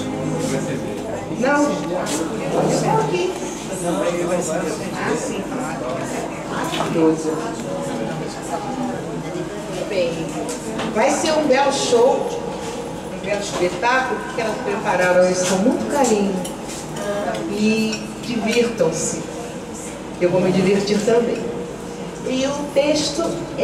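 An elderly woman sings into a microphone through loudspeakers.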